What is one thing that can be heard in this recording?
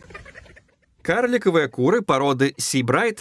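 Chickens cluck and squawk loudly close by.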